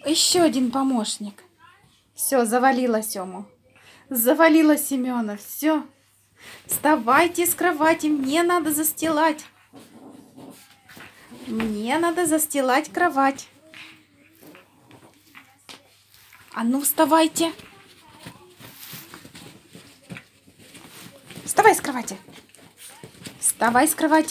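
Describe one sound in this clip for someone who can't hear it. A small dog rolls and scratches on rustling bedding.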